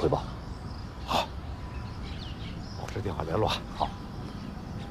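An older man answers briefly in a calm voice.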